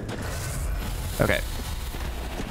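A sword swings and strikes with a sharp clang.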